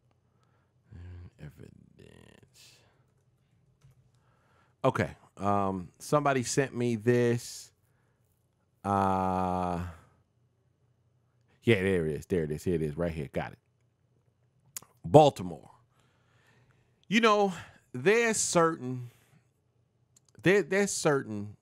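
A man speaks with animation into a close microphone, pausing between phrases.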